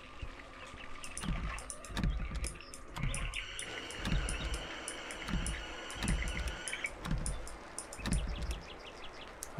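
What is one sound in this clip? Footsteps thud slowly on a wooden floor indoors.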